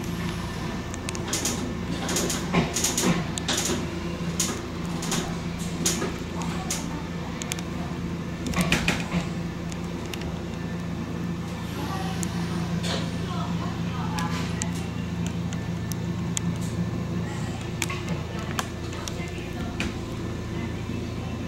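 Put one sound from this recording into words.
Train wheels click and clatter over rail joints and switches.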